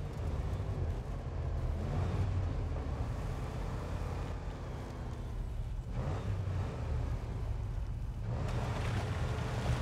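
A truck engine rumbles and strains as it drives over rough ground.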